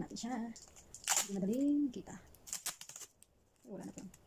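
Packing tape rips as it is pulled off the roll.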